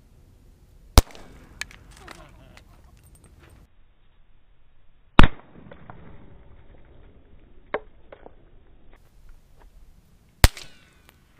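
Loud gunshots crack outdoors, one at a time, with a short echo.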